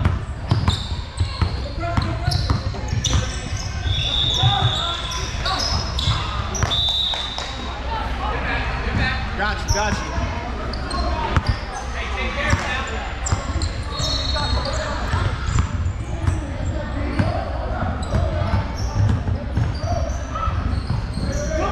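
Young players shout and call out across the court.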